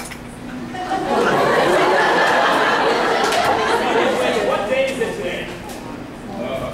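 An audience laughs together.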